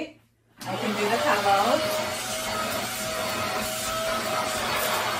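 A handheld vacuum cleaner whirs steadily close by.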